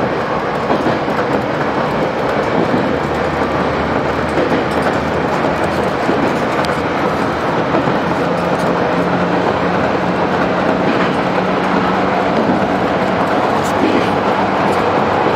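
A train rumbles and rattles steadily along the tracks, heard from inside a carriage.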